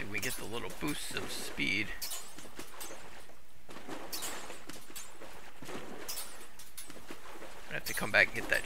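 Water splashes against a fast-moving boat.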